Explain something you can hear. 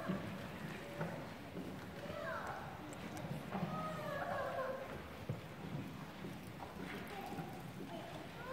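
A children's brass band plays in a large echoing hall.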